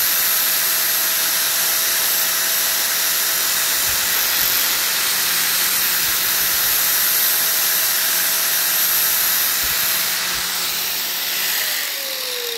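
An angle grinder whines loudly as it cuts through tile.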